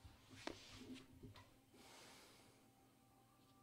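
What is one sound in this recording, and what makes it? Clothes rustle as a man shifts in a chair.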